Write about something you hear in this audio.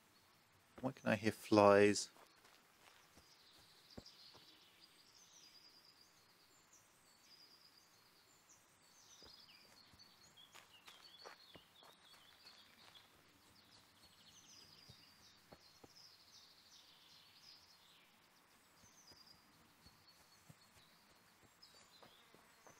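Footsteps swish and rustle through low plants.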